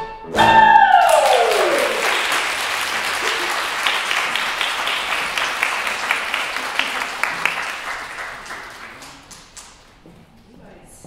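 An audience applauds loudly, then the applause slowly dies away.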